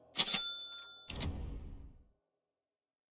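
A game menu chimes and clicks as items are selected.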